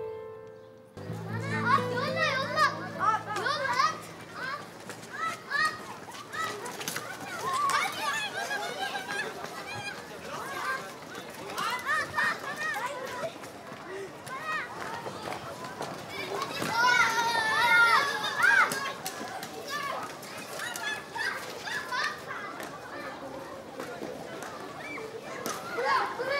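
Children shout and laugh excitedly outdoors.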